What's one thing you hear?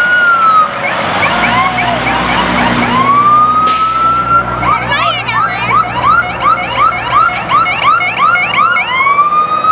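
A fire truck engine rumbles past.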